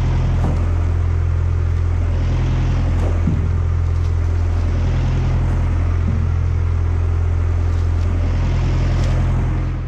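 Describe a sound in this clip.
Dry brush and twigs rustle and crackle as hands pull at them.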